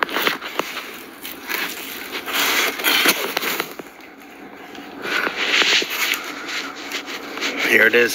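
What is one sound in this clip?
A furry microphone cover rubs and rustles right against the microphone.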